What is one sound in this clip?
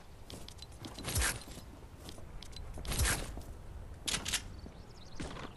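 Wooden panels snap into place with sharp clattering bursts.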